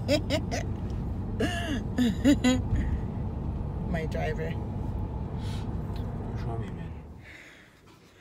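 A car engine rumbles low and steady inside a moving car.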